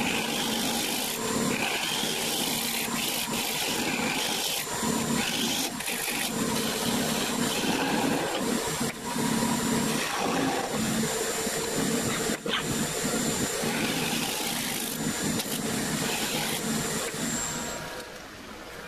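A gouge scrapes and cuts into spinning wood with a rough, hissing noise.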